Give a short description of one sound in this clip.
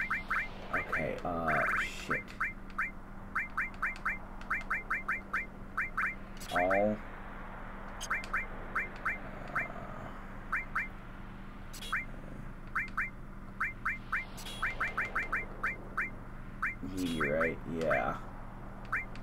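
A menu sound sweeps in swift chirps as options are confirmed.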